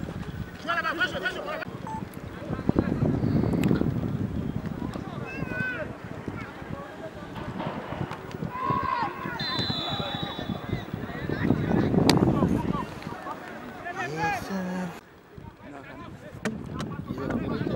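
A large crowd shouts and cheers in an open stadium.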